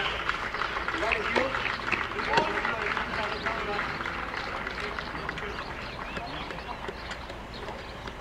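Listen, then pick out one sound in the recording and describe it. Two young women talk quietly with each other outdoors.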